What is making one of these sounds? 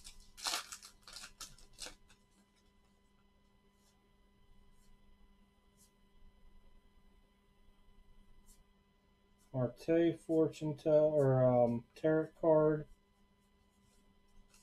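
Trading cards rustle and flick as a hand sorts through them.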